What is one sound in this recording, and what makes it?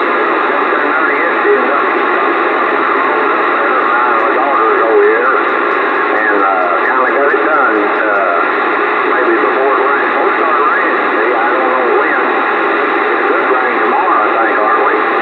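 Garbled, warbling voices come and go through a radio's static.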